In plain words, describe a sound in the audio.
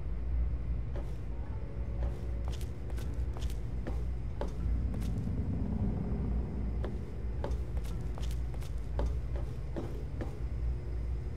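Footsteps clank steadily on a metal floor.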